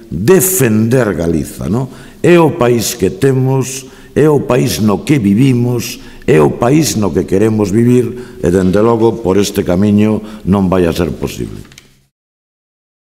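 A middle-aged man speaks with animation into microphones, close by.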